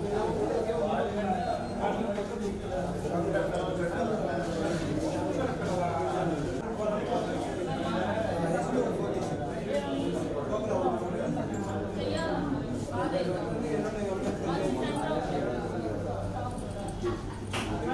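A crowd of men and women murmur and chat nearby.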